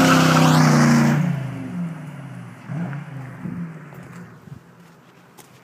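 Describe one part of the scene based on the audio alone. A car speeds away and fades into the distance.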